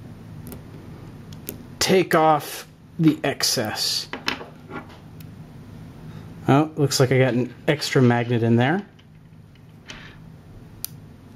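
Small magnetic balls click and snap together.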